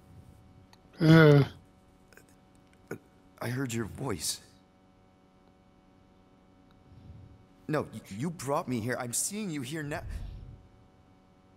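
A man speaks quietly and hesitantly, close by.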